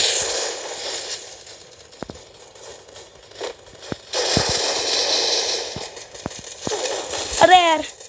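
Gunshots crack sharply a few times in a video game.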